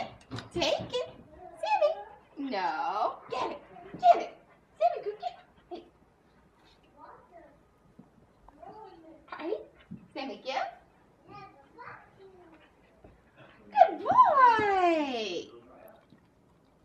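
A young woman talks playfully and excitedly, close by.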